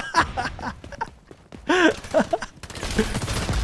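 Rapid gunshots crack.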